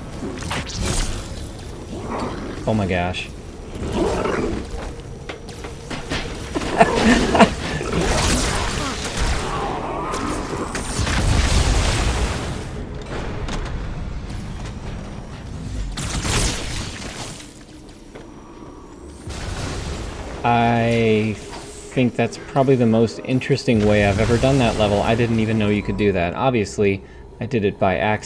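An energy sword hums and slashes.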